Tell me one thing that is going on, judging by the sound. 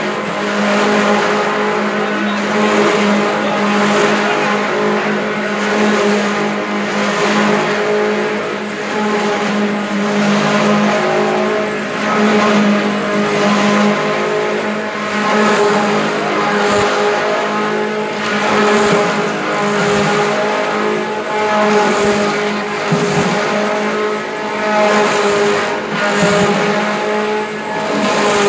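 A conveyor belt rattles as it runs.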